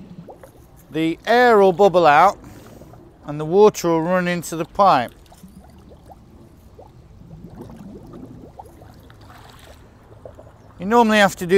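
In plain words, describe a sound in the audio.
Water gushes from a hose and splashes into a pond.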